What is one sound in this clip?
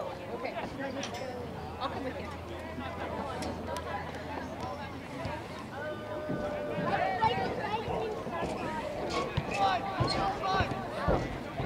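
A crowd of spectators chatters and calls out at a distance outdoors.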